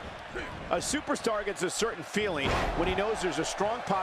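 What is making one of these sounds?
A body slams heavily onto a wrestling mat.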